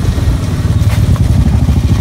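A motorcycle rides past.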